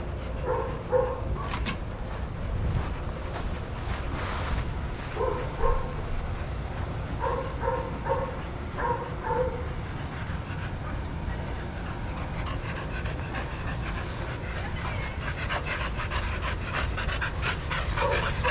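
Dogs pant loudly close by.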